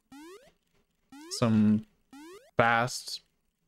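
A video game plays short rising chime effects.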